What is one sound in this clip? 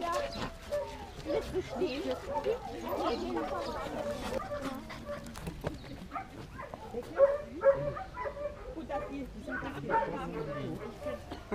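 Puppies whine and yelp close by.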